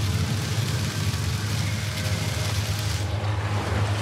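Fiery meteors streak past with a rushing roar.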